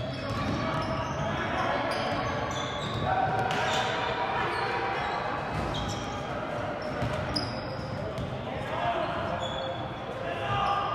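Spectators chatter and call out in the stands.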